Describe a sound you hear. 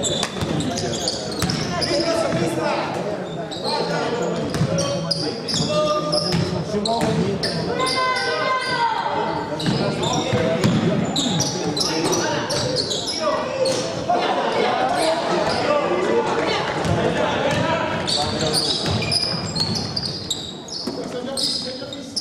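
Basketball shoes squeak on a wooden court.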